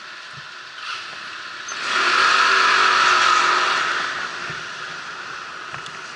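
A motorcycle speeds up.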